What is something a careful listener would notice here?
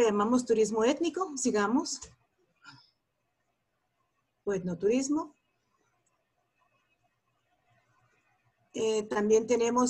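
A woman speaks calmly through an online call, with short pauses.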